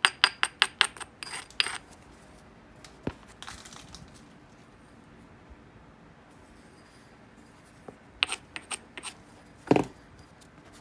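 A hammerstone taps and chips a glassy stone with sharp, ringing clicks.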